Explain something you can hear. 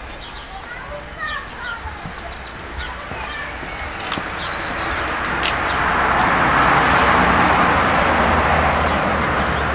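A bicycle's wheels tick as a man wheels it along.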